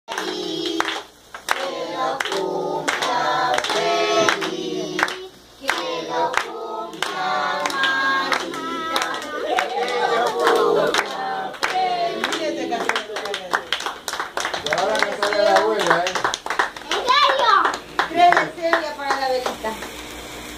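A group of women and girls sing together loudly and cheerfully.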